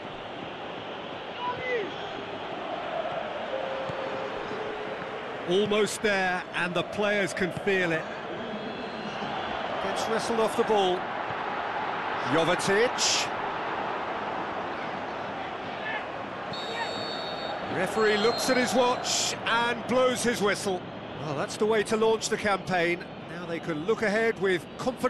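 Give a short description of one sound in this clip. A stadium crowd murmurs and cheers steadily in the background.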